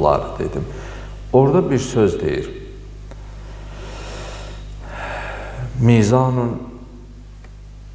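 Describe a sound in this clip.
A young man chants melodically into a microphone, with a slight echo.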